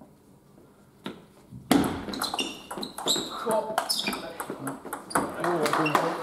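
A table tennis ball clicks quickly back and forth off bats and a table, echoing in a hall.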